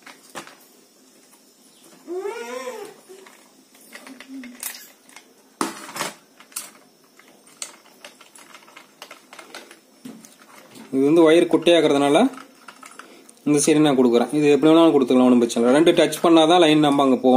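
A screwdriver clicks and scrapes against small metal screws.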